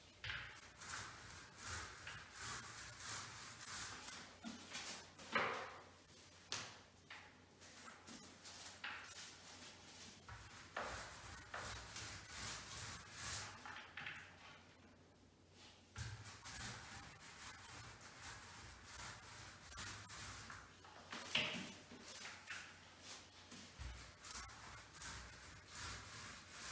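A paint roller rolls and swishes against a wall.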